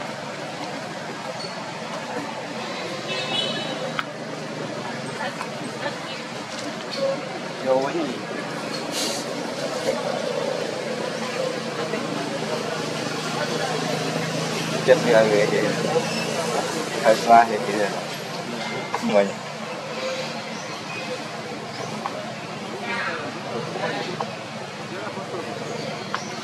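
A thin plastic water bottle crinkles as it is handled.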